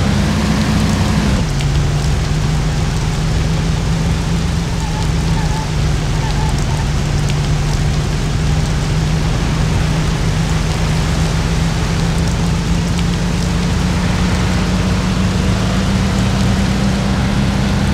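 Tyres roll on a road with a steady rumble.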